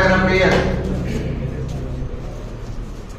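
A man speaks through a microphone and loudspeaker in an echoing room.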